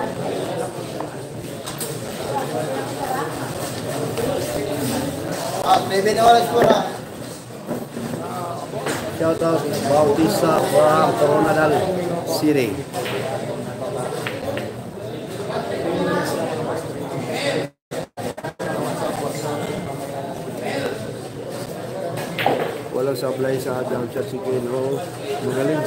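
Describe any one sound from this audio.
A crowd of young men chatters nearby.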